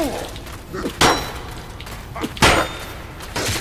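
A sword clangs sharply against a metal shield.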